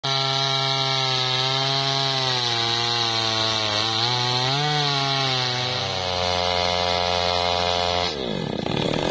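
A chainsaw bites into wood.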